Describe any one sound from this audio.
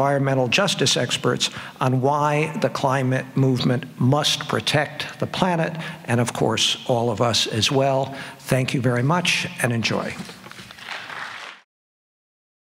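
An elderly man speaks calmly into a microphone, heard through loudspeakers in a large hall.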